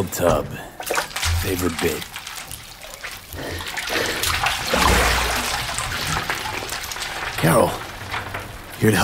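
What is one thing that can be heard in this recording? Loose shards rustle and clatter as a body sinks into them.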